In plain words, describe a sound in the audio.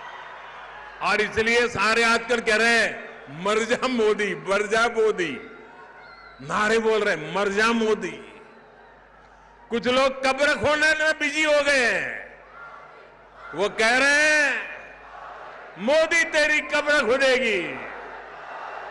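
An elderly man speaks forcefully through a microphone and loudspeakers, in slow drawn-out calls.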